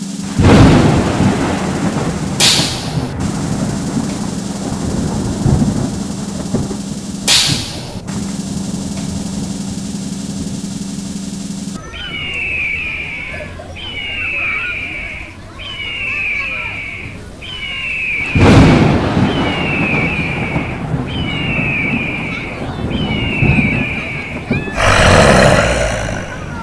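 Loud music plays through loudspeakers.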